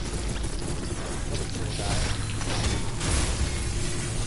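Metal blades clash and slice with sharp crackling.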